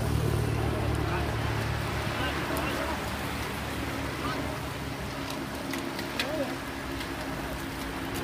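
A pack of bicycles whirs past with a rush of tyres on the road.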